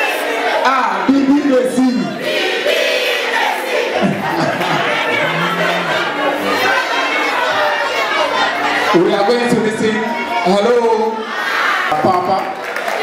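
A crowd laughs and cheers in a large room.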